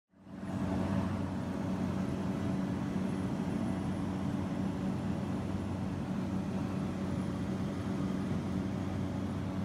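A small plane's propeller engine drones steadily from inside the cabin.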